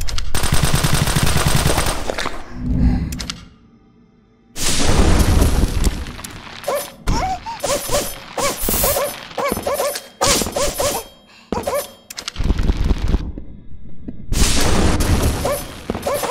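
Gunshots from a video game ring out in rapid bursts.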